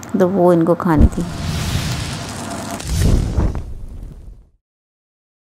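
A loud explosion booms and rumbles, then fades.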